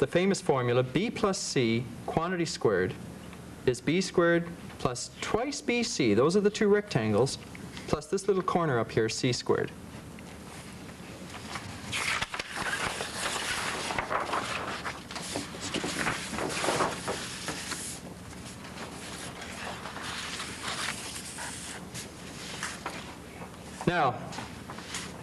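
A man speaks calmly and clearly, as if explaining.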